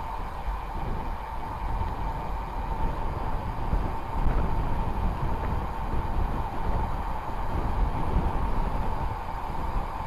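Bicycle tyres hum on the road.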